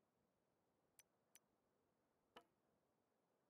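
Short game menu clicks sound as windows open and close.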